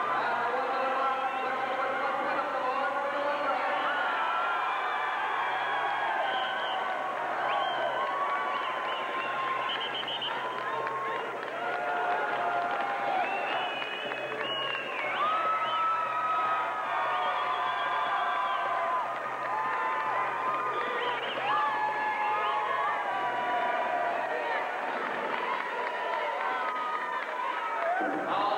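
A large crowd murmurs and shouts in an echoing arena.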